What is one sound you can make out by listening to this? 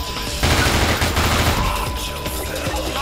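A submachine gun fires rapid bursts that echo in a large concrete space.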